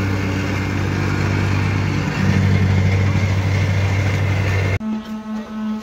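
A small engine drones steadily close by.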